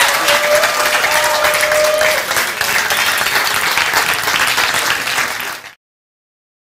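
A large audience applauds and cheers in a hall.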